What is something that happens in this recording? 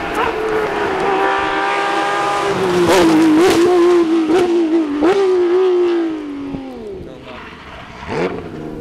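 A rally car engine roars as the car races past, its pitch dropping as it goes.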